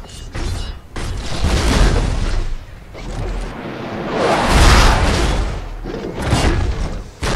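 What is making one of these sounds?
Metal parts clank and whir as a giant robot transforms.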